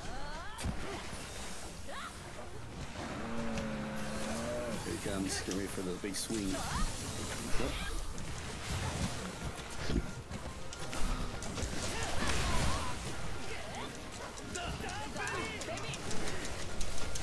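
A heavy axe strikes a large monster with sharp impacts.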